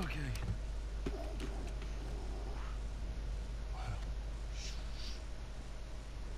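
A young girl makes playful whooshing noises with her voice.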